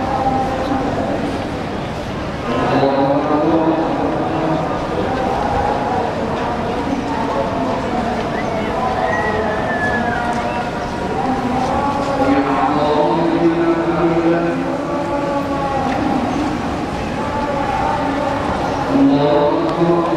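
A large crowd of voices murmurs and chants together outdoors.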